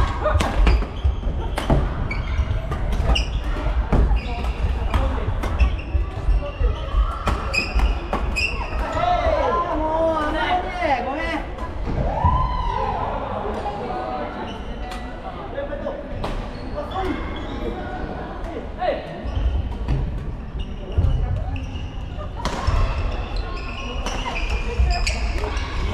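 Sneakers squeak on a wooden floor.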